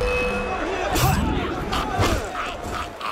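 Swords clash and ring in a quick fight.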